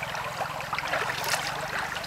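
Water splashes as a hand flicks it.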